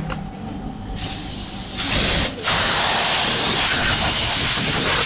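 Compressed air hisses loudly from a blow nozzle.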